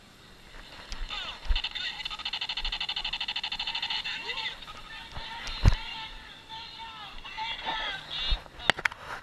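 Toy laser guns fire with electronic zapping and beeping sounds.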